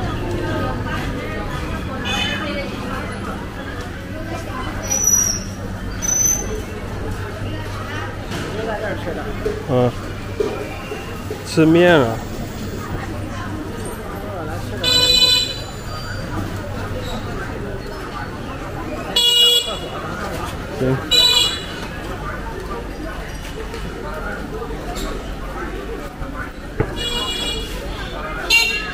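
Footsteps walk along a busy street outdoors.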